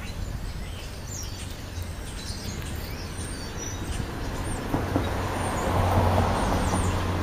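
A hamster nibbles and chews food up close.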